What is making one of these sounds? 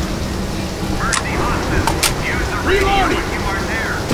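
A rifle is reloaded with metallic clicks.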